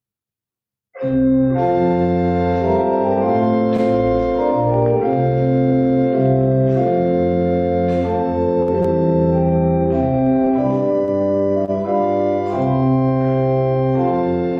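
An organ plays slow sustained chords.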